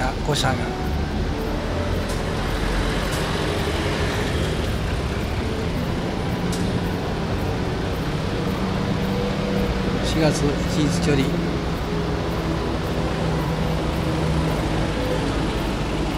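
Bus engines rumble and drone as buses drive slowly past below.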